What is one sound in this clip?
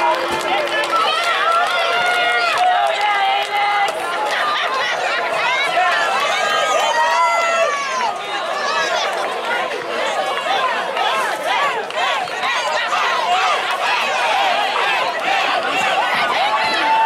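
A crowd of spectators shouts and cheers nearby, outdoors.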